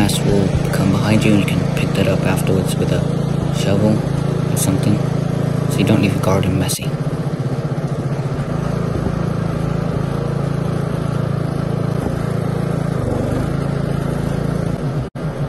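A ride-on mower engine hums steadily close by.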